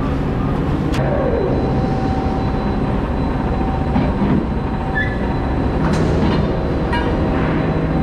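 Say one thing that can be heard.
A metal crane grab clanks sharply.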